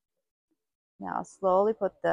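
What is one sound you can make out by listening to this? A young woman speaks calmly and clearly close to a microphone.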